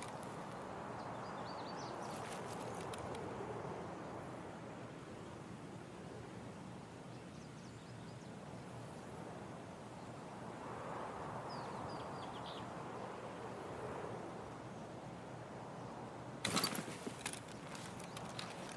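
Wind blows softly through pine trees outdoors.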